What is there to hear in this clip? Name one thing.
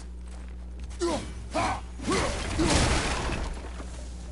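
Wood smashes and splinters.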